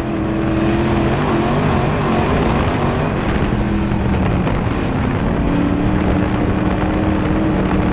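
Dirt and clods rattle against the car's body.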